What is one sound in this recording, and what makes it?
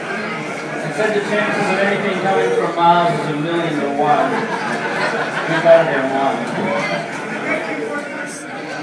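A crowd cheers and whoops loudly through loudspeakers.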